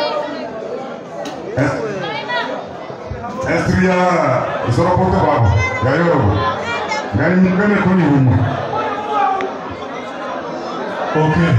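A man raps loudly into a microphone, heard through loudspeakers in an echoing hall.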